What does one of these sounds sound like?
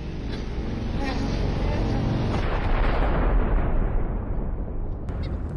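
A rocket blasts off with a loud, rushing roar that slowly fades.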